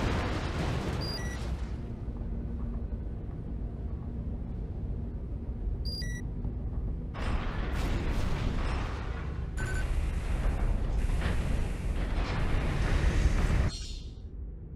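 A large robot's heavy metal footsteps clank and thud.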